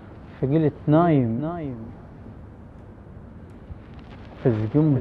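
A man speaks slowly close to a microphone, with a drawn-out, singing tone.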